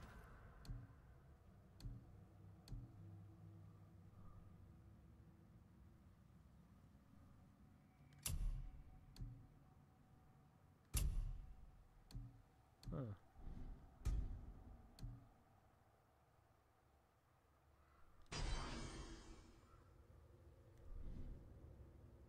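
Menu clicks and soft chimes sound as options are selected.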